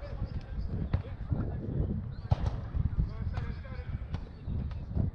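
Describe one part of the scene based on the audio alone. A football is kicked.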